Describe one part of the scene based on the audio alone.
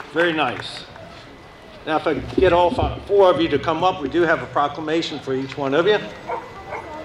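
A man speaks with animation through a loudspeaker outdoors.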